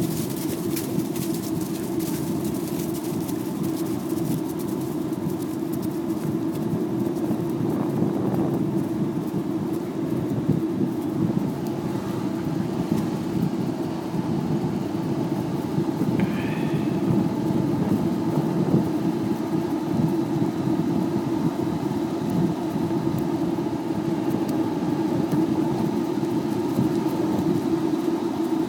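Dogs' paws patter quickly on grass.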